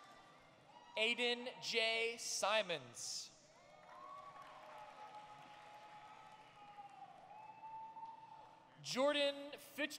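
A crowd cheers and whoops loudly in a large echoing hall.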